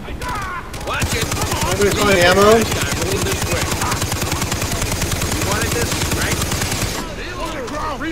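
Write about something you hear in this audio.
An automatic gun fires rapid, loud bursts.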